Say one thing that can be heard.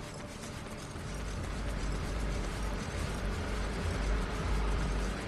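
Traffic rumbles steadily nearby.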